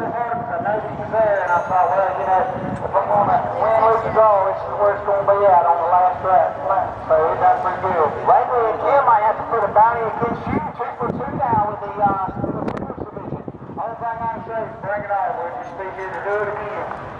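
A man talks with animation into a microphone, close by, outdoors.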